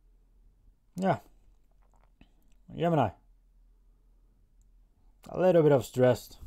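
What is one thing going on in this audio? A young man speaks calmly and close by, in short bursts with pauses.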